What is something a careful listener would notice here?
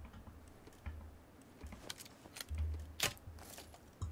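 A rifle clatters as it is raised to aim.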